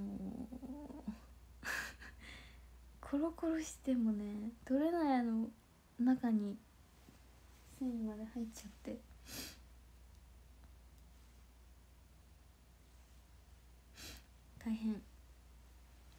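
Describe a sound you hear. A young woman talks softly and playfully close to a microphone.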